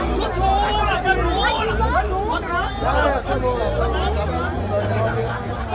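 A crowd of people chatters and calls out outdoors nearby.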